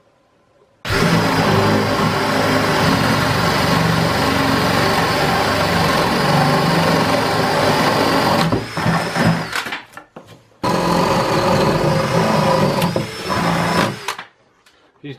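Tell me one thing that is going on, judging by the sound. A cordless drill whirs steadily as it bores into wood.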